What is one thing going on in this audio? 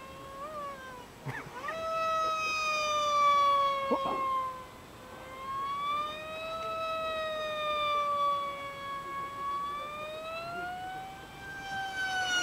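A small aircraft's engine drones overhead, its pitch slowly rising and falling.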